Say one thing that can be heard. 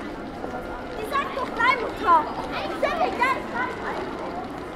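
A woman's voice rings out close by with animated, high-pitched chatter.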